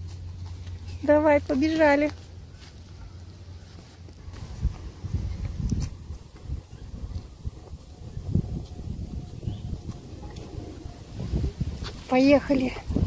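A young boy calls out loudly in a high voice.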